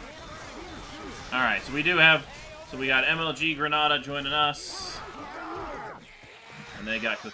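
A horde of zombies snarls and groans close by.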